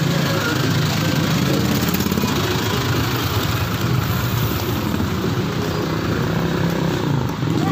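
Footsteps scuff along a concrete path.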